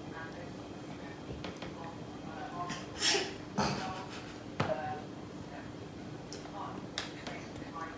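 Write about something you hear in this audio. A baby babbles and squeals.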